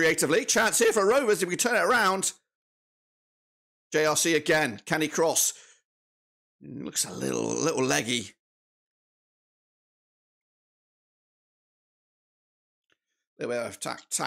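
A middle-aged man talks with animation into a close microphone, pausing now and then.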